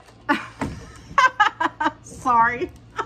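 A middle-aged woman laughs loudly.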